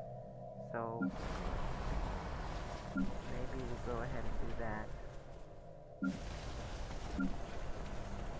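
Short soft interface clicks sound now and then.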